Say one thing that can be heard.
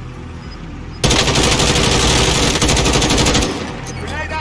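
A rifle fires a rapid automatic burst.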